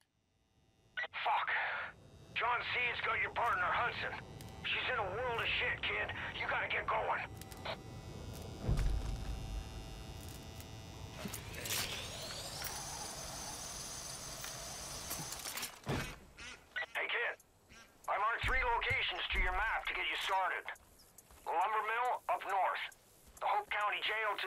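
A man speaks calmly and close through a microphone.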